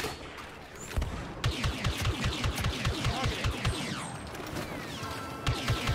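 Blaster rifles fire in rapid bursts.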